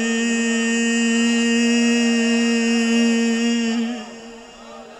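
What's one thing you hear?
A middle-aged man chants loudly through a microphone and loudspeakers, holding a long steady note.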